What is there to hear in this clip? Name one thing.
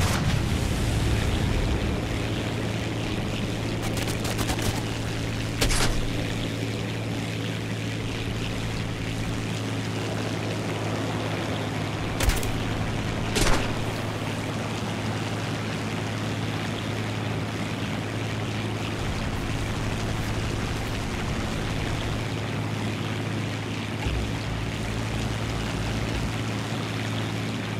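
A propeller plane's engine drones steadily throughout.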